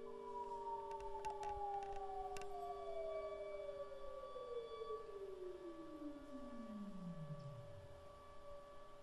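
An electronic tone slides steadily down in pitch.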